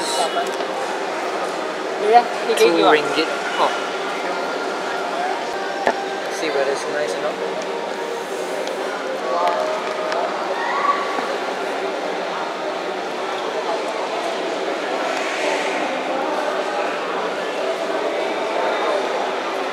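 A busy crowd chatters in the background.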